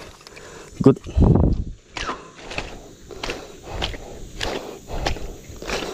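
Footsteps crunch over dry leaves and twigs.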